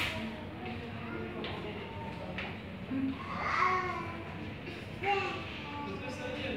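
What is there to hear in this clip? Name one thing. A young woman talks softly to a child.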